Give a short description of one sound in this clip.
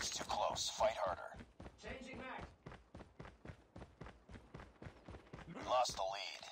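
Quick footsteps run over hard ground.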